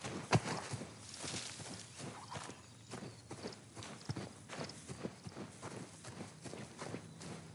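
Footsteps run quickly through tall grass.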